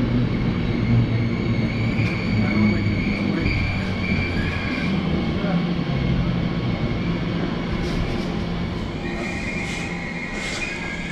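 Brakes squeal as a train slows.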